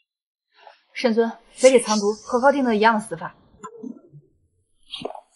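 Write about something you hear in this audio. A young woman speaks sharply and close by.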